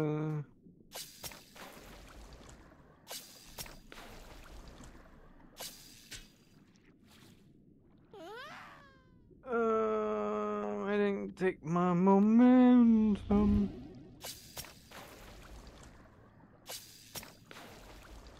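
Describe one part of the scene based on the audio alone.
Sharp, crackling hits land on a creature.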